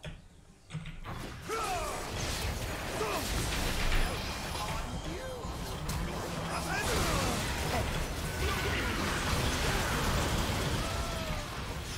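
Video game spell and combat effects crackle and whoosh.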